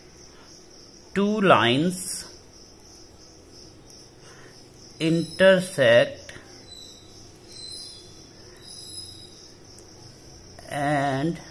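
A ballpoint pen scratches softly across paper.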